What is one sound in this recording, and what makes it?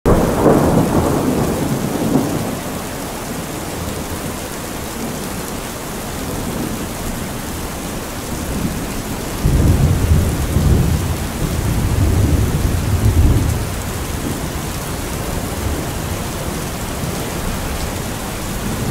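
Water streams off a roof edge and splashes.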